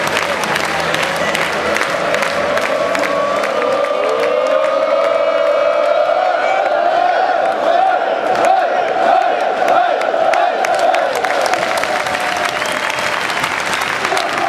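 Football fans sing and chant together close by.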